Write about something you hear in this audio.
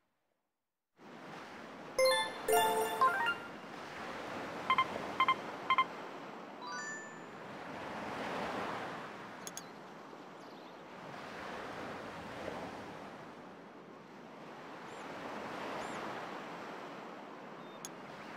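A soft steady breeze blows outdoors, slowly swelling and fading.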